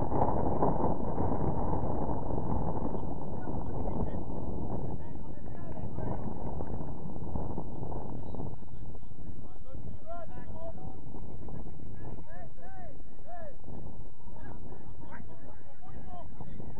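Wind blows hard across the microphone outdoors.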